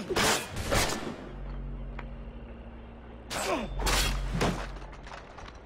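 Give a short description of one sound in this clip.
Swords clash and ring sharply.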